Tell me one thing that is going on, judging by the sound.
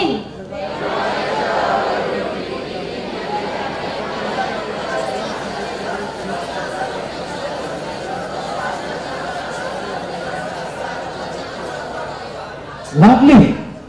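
A large audience murmurs and chatters in a big hall.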